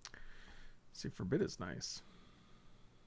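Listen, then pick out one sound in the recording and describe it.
A man speaks briefly and casually into a microphone.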